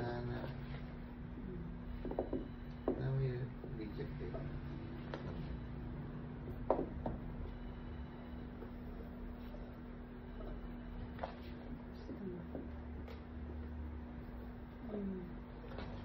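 Hands rub and squeeze food in a metal bowl with soft wet sounds.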